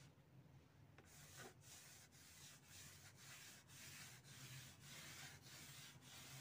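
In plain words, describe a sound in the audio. A damp sponge swishes in quick, even strokes across paper.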